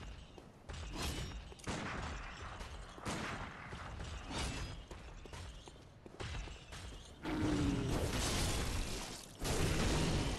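Weapons clash and slash in loud bursts of game combat.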